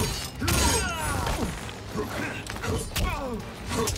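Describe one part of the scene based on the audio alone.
A blade slashes and clangs.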